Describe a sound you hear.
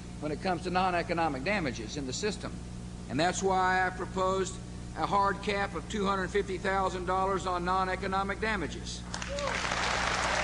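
A middle-aged man speaks forcefully through a microphone and loudspeakers.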